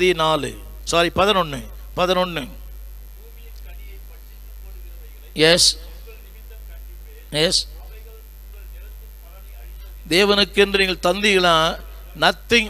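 An elderly man speaks slowly and deliberately into a microphone, with pauses.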